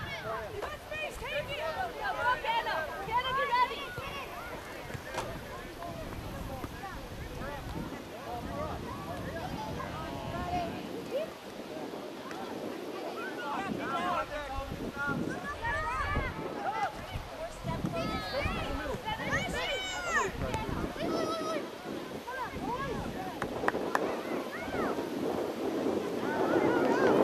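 Spectators on the sideline shout and cheer outdoors.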